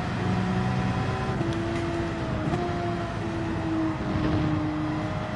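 A racing car engine roars steadily, its pitch dipping and shifting between gears.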